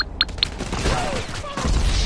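Gunshots crack sharply at close range.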